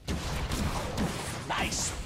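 A spell whooshes and strikes with an icy crack.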